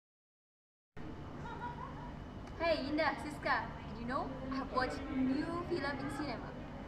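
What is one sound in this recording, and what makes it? A young woman talks with animation close by.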